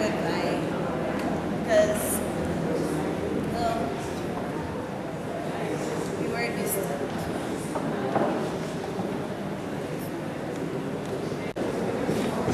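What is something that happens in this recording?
A young woman speaks into a microphone through loudspeakers in an echoing hall.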